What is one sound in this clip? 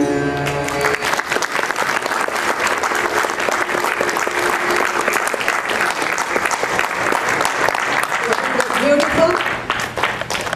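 A crowd applauds steadily in an echoing hall.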